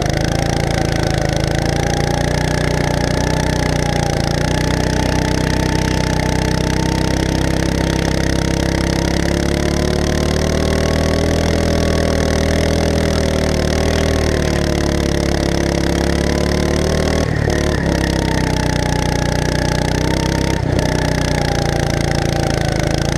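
A go-kart engine drones loudly up close, its pitch rising and falling with speed.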